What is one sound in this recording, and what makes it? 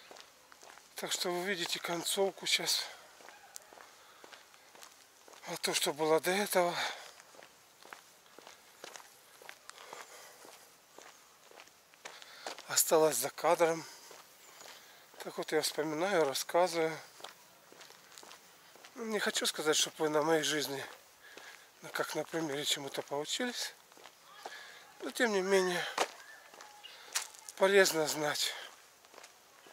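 An elderly man speaks calmly in short bursts close to a microphone.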